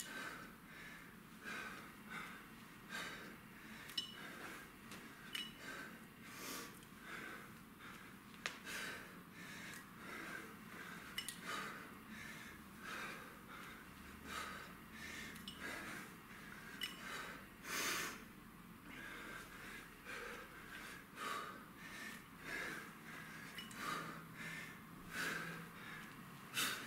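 A man breathes out hard in a steady rhythm.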